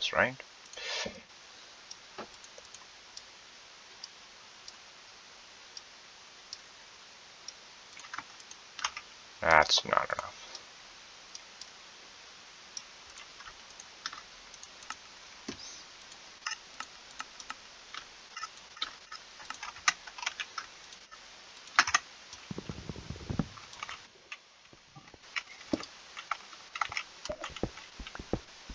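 Soft clicks tap quickly and repeatedly.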